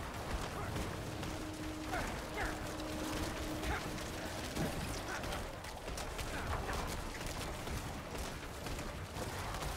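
Game spell effects crackle and whoosh.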